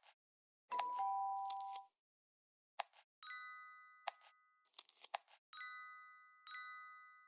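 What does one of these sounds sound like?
Bright game chimes ring out several times, each slowly fading.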